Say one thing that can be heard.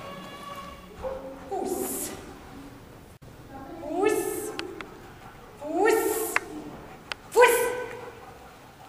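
A large dog barks.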